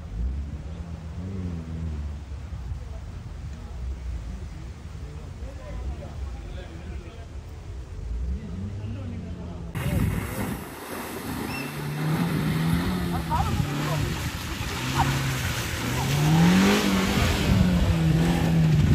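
An off-road vehicle's engine revs and labours through mud.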